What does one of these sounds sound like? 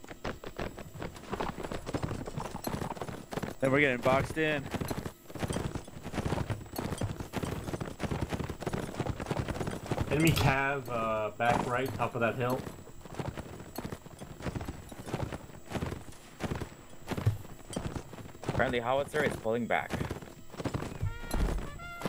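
Horse hooves pound steadily on snow at a gallop.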